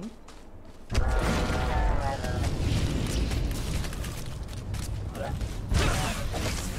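Blasters fire and weapons clash in a loud fight.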